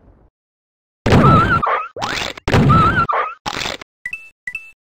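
A gun fires several loud blasts.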